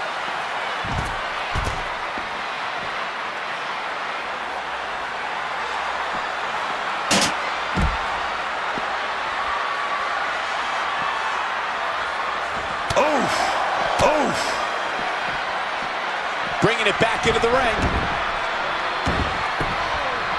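Bodies thud heavily as wrestlers slam and strike each other.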